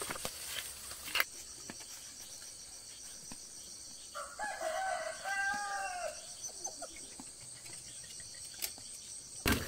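Footsteps crunch on grass outdoors.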